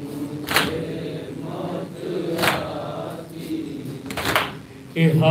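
A young man recites in a chanting voice through a microphone and loudspeakers.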